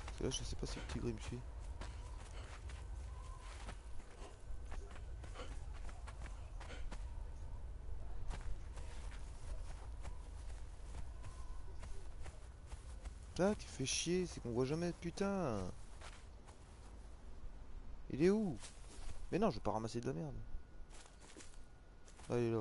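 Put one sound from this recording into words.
Footsteps patter quickly on sand and grass.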